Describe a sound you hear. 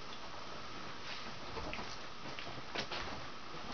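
Footsteps thud across a floor nearby.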